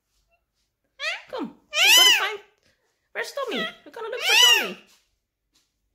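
A parrot squawks loudly and shrilly close by.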